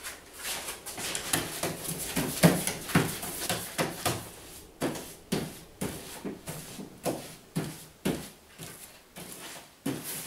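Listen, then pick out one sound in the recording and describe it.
A pasting brush swishes back and forth over wallpaper wet with paste.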